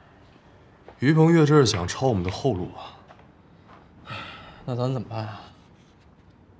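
A man speaks in a low, serious voice.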